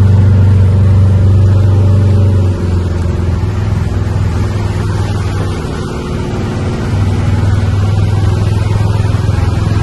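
Tyres splash through shallow water on a street.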